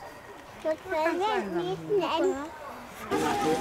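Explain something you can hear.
A woman speaks softly and encouragingly to a small child.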